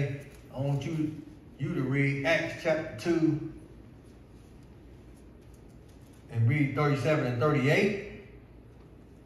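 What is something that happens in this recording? A man speaks through a microphone in an echoing hall.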